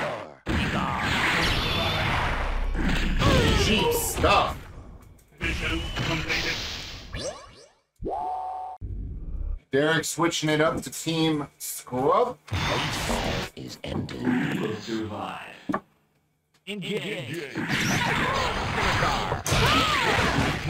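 Energy blasts roar and crackle in a fight.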